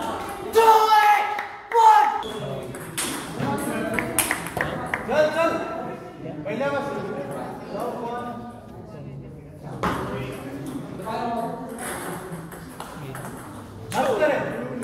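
Men talk nearby with animation.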